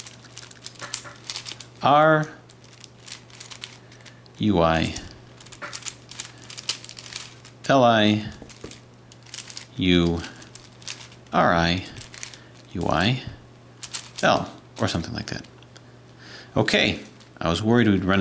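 Plastic puzzle pieces click and clack as hands twist them.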